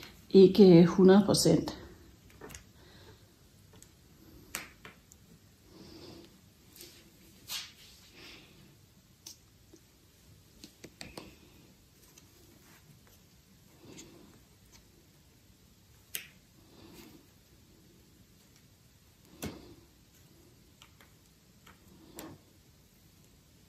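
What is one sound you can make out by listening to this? Pins click and tap softly as they are pushed into a board.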